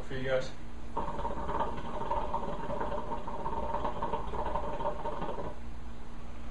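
A water pipe bubbles steadily as a young man draws on it.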